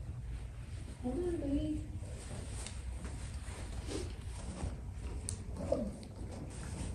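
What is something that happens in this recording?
A woman talks quietly nearby.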